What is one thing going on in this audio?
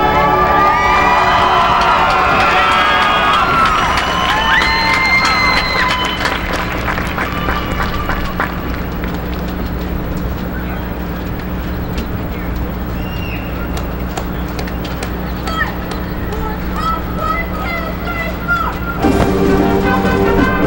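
A sousaphone plays deep brass notes outdoors.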